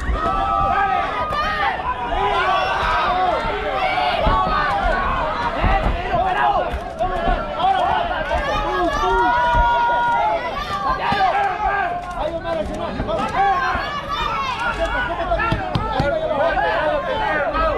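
A large crowd cheers and shouts loudly throughout.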